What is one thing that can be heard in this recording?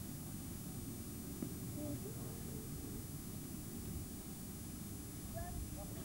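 Two men talk quietly at a distance.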